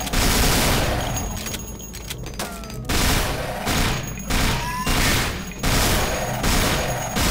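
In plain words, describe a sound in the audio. Loud explosions boom and roar one after another.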